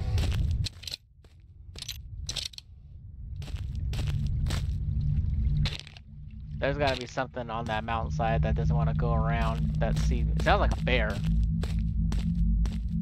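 Footsteps crunch steadily on grass.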